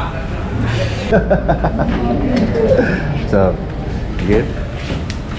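A boy talks and laughs close by.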